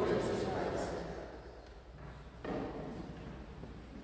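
An elderly man coughs close to a microphone.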